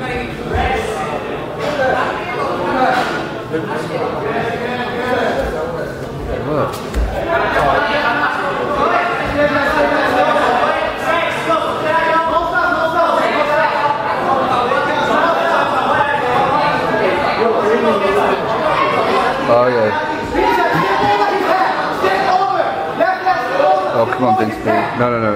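Several men shout instructions loudly in a large echoing hall.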